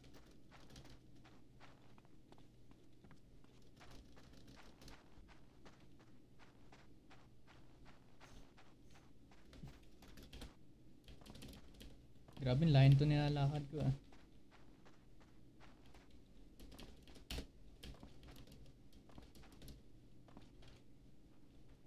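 Footsteps patter quickly on a floor.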